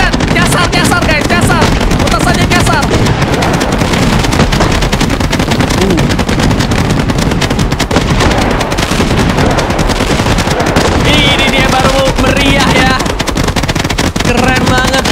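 Fireworks crackle and pop in rapid bursts.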